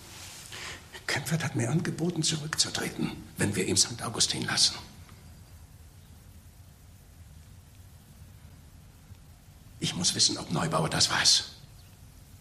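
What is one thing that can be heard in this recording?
An elderly man speaks in a low, urgent voice close by.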